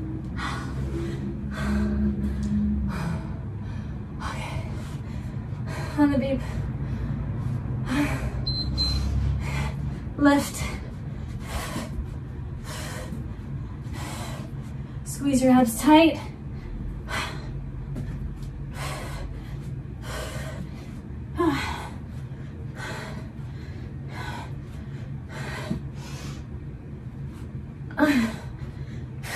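A young woman breathes hard in short, rhythmic puffs close by.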